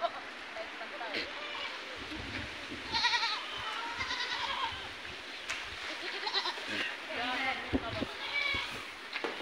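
A herd of goats bleats loudly and often, close by.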